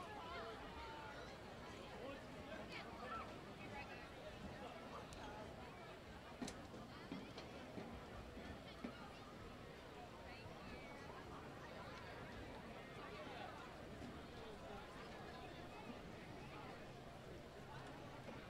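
A distant crowd murmurs and chatters across an open field outdoors.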